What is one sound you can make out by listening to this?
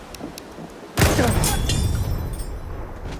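A loud explosion booms close by.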